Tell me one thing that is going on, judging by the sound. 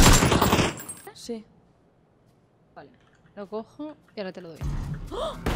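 A young woman talks with animation through a headset microphone.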